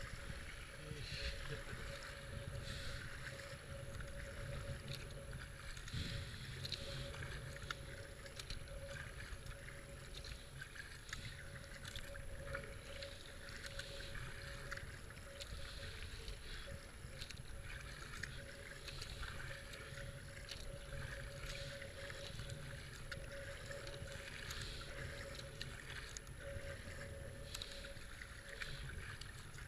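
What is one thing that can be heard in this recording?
A paddle splashes and dips into water in a steady rhythm.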